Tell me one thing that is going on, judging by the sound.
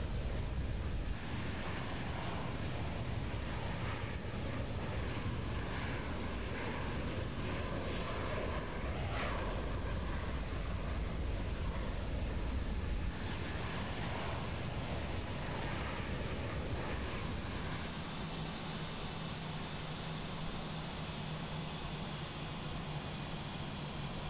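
Jet engines roar steadily as an airliner rolls along the runway.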